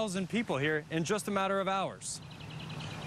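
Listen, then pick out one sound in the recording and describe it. A man speaks calmly and clearly into a microphone, like a news reporter.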